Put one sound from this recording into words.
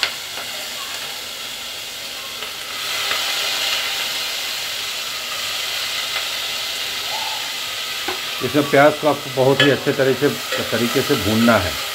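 Onions sizzle and hiss in a hot pot.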